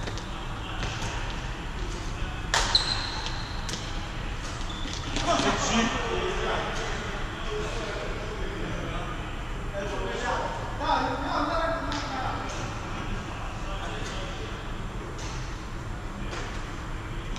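Shoes squeak and patter on a court floor.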